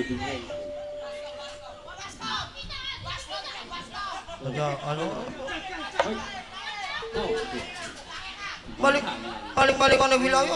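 A man speaks animatedly into a microphone over loudspeakers.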